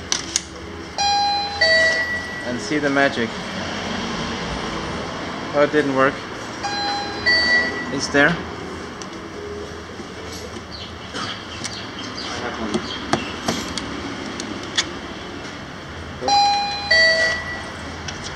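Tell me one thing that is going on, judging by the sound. An electronic machine beeps in short tone sequences.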